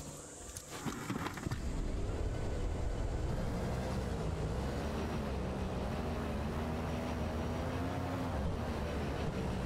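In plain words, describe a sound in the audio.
A hovering vehicle's engine drones steadily.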